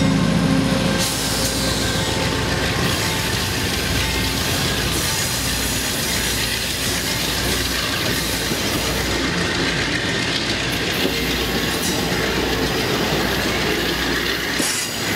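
Passenger car wheels rumble and clatter on the rails.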